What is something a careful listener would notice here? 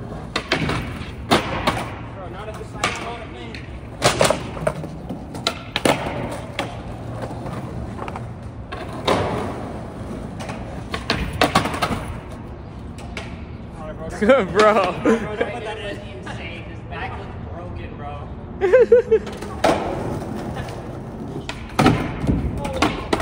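A skateboard snaps and clacks sharply as it lands on the concrete.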